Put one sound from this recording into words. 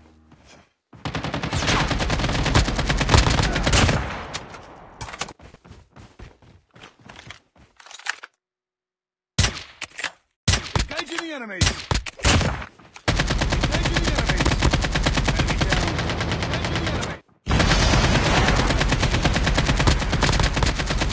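An automatic rifle fires rapid, loud bursts.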